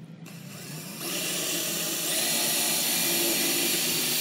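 A power drill whirs as it bores through thin metal.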